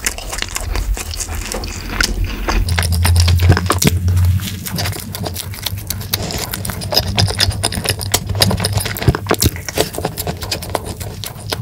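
A man chews soft cake wetly and smacks his lips close to a microphone.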